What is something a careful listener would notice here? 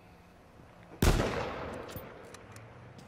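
A rifle fires a single loud shot that echoes away.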